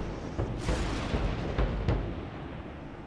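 Thunder rumbles loudly.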